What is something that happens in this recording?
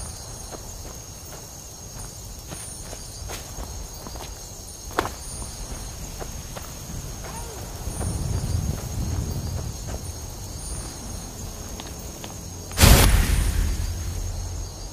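Footsteps tread steadily over grass and stone.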